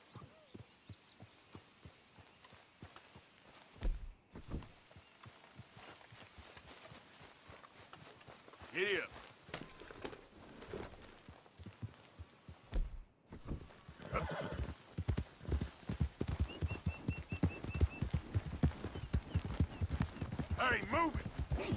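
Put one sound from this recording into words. Hooves thud at a steady trot on a dirt path, growing closer and louder.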